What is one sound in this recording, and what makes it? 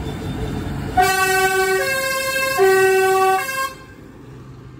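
A tractor horn plays a short tune.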